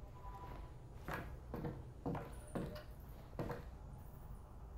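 Wooden boards crack and splinter in quick bursts.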